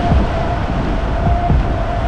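A windscreen wiper sweeps across wet glass.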